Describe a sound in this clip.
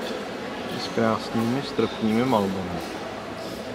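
A man speaks briefly in an echoing hall.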